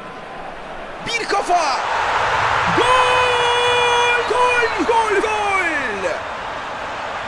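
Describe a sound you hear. A large stadium crowd roars and cheers loudly, then dies down.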